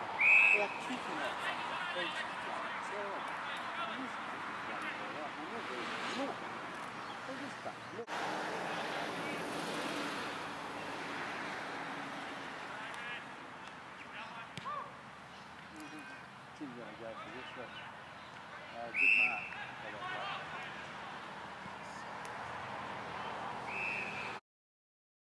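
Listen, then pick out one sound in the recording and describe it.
A referee's whistle blows sharply several times outdoors.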